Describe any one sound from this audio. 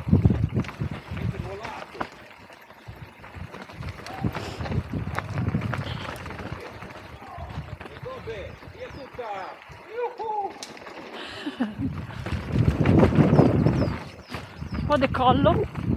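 Bike tyres crunch and rattle over a dirt trail.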